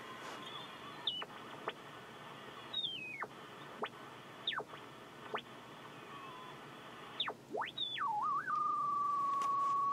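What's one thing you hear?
A radio whistles and squeals in gliding tones as it is tuned.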